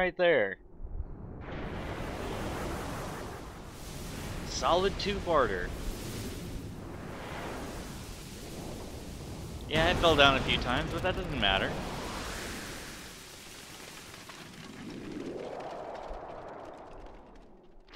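A deep rumble and crumbling roar fill the air as a huge figure collapses.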